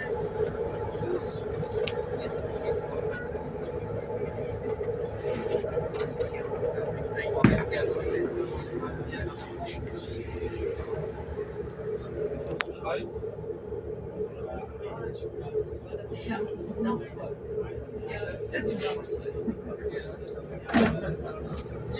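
A train hums steadily, heard from inside a carriage.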